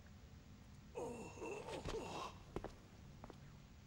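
An injured man groans weakly.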